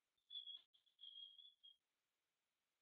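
A young woman speaks briefly through an online call microphone.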